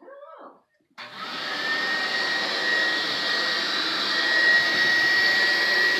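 A handheld vacuum cleaner whirs loudly and steadily.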